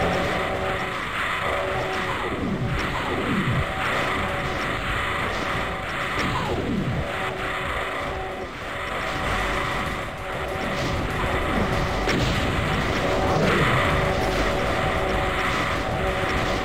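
Monsters growl and shriek as they fight.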